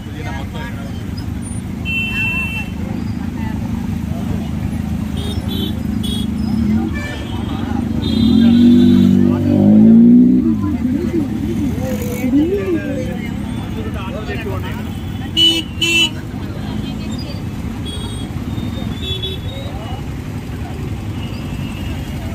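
A crowd of men and women chatters in a busy outdoor market.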